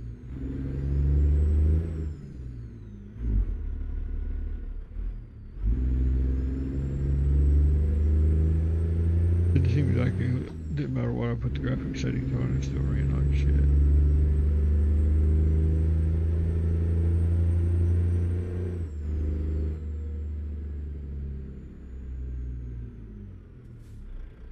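A truck's diesel engine rumbles and revs up and down through the gears.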